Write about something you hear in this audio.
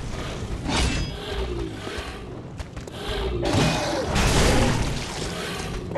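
A man speaks close to a microphone with animation.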